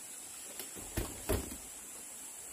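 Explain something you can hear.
A wicker basket thumps and creaks as it is lifted.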